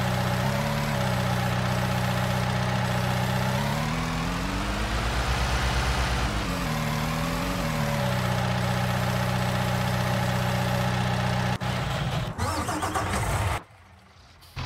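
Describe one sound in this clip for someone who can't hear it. A telehandler's diesel engine hums and revs up and down.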